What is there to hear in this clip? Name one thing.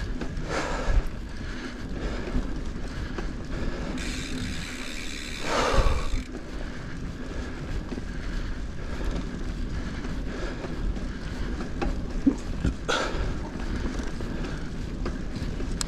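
Bicycle tyres roll and crunch over a bumpy dirt track.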